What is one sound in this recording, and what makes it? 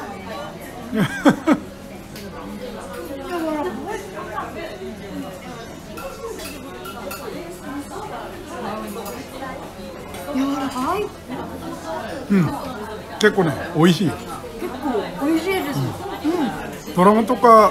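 A young woman exclaims and talks with animation close by.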